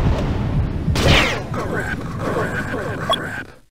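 An explosion bursts with a loud boom and crackle.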